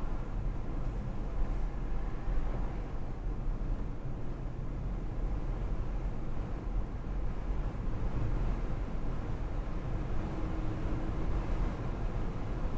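Tyres rumble on an asphalt road.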